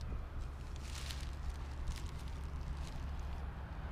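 A plastic sheet rustles as it is handled.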